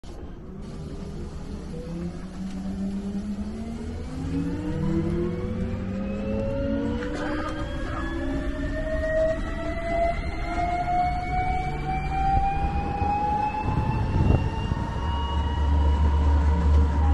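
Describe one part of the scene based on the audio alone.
An electric vehicle motor whines and rises steadily in pitch as it speeds up.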